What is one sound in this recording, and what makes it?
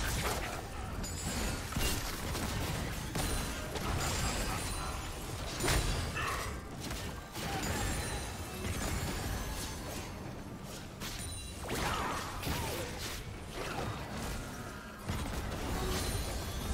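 Spell effects burst and crackle in a game battle.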